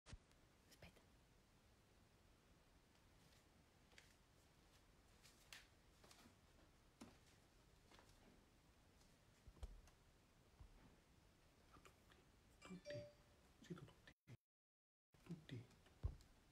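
A cat moves about with soft rustles and light bumps nearby.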